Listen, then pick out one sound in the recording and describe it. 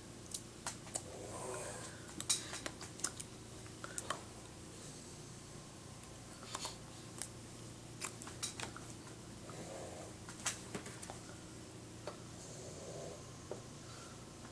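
A middle-aged woman speaks softly and haltingly, close by.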